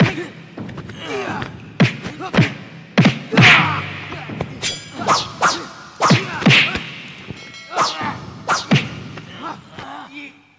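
A man grunts and groans with effort.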